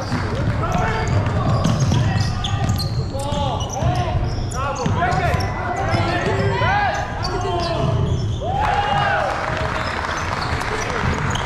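Sneakers squeak sharply on a hard court, echoing in a large hall.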